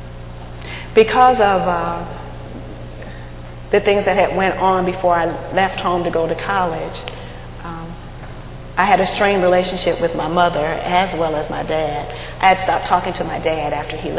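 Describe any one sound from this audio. A woman speaks with animation through a microphone in an echoing hall.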